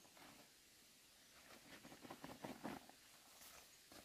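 Loose material pours from a sack onto the ground.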